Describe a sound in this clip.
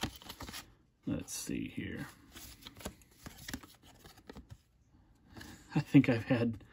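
Stiff cards flick and rustle as they are shuffled by hand.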